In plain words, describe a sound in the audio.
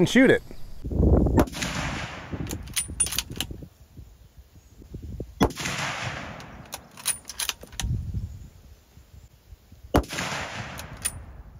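A rifle fires loud shots outdoors.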